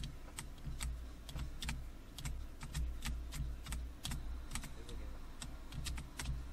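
Rhythm game hit sounds click in quick succession.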